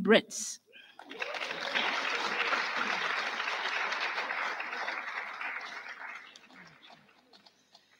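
An audience applauds in a large hall, then the applause fades.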